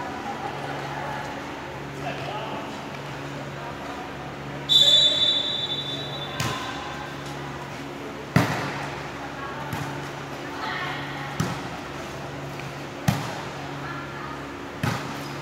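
Young women call out to each other across a hall.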